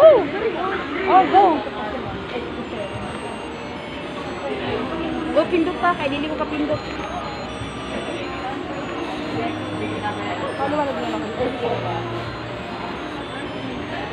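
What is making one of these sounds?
A young woman talks close by.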